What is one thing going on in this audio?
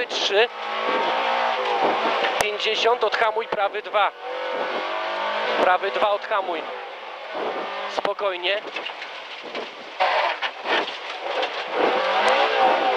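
A car engine revs hard, rising and falling in pitch with gear changes.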